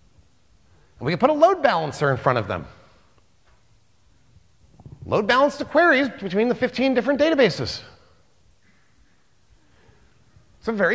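A man speaks with animation through a microphone, pausing between phrases.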